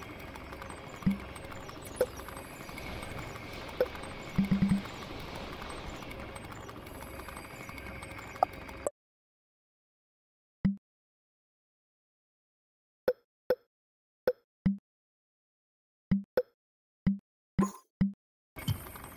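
Short clicks sound as menu items are picked.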